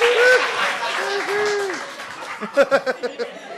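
An audience laughs and cheers in a large hall.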